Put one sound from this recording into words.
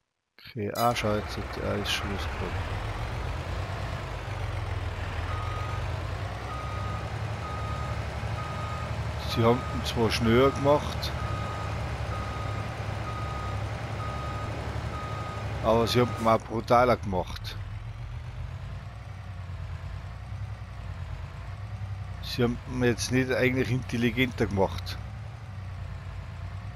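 A truck engine rumbles steadily at idle and while driving.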